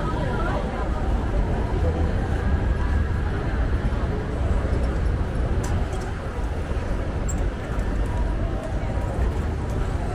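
A busy crowd murmurs outdoors.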